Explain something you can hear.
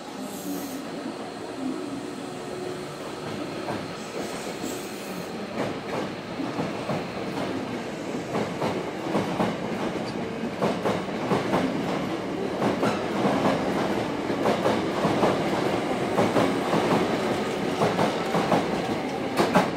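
A train rolls past close by with a loud, steady rumble.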